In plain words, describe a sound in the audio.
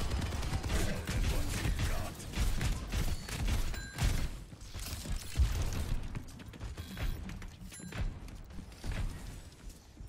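Gunfire and explosions from a game sound in quick bursts.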